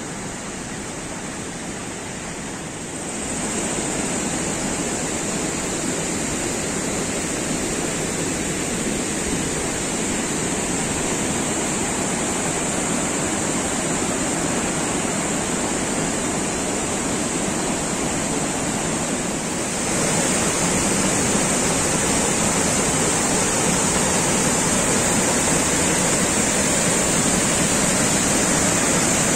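A mountain stream rushes loudly over rocks outdoors.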